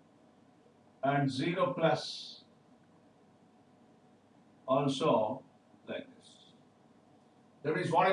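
A man speaks in short bursts, close to a microphone, explaining calmly.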